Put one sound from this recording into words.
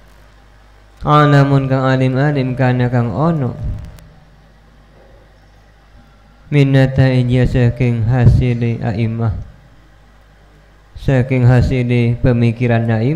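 A man chants in a long, melodic voice into a microphone, in phrases with pauses between them.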